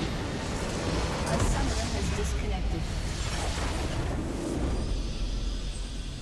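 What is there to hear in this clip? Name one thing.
A crystal structure shatters with a loud explosion.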